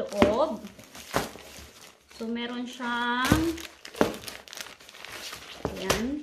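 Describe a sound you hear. A plastic bag crinkles and rustles as it is handled.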